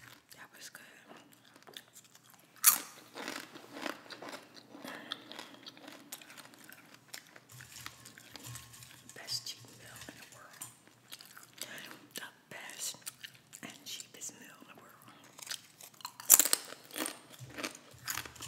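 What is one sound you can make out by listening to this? A woman eats close to a microphone, with soft wet chewing sounds.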